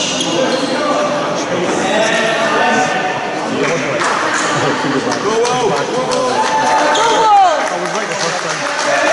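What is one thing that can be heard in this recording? Voices of men and young people chatter in a large echoing hall.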